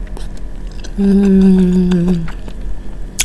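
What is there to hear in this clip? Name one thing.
A young woman hums with pleasure.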